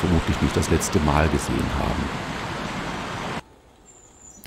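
Fast whitewater rushes and roars loudly.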